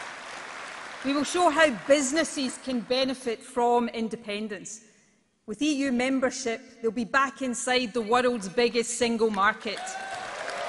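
A woman speaks firmly into a microphone, echoing in a large hall.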